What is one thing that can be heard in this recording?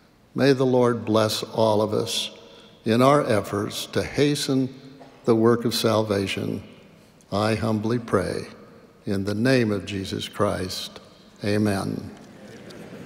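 An elderly man speaks slowly and calmly into a microphone in a large echoing hall.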